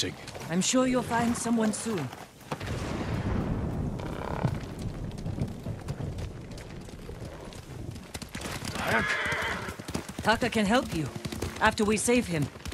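Horses' hooves thud on a dirt path at a gallop.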